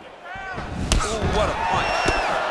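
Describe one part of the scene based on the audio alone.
A punch lands on a body with a thud.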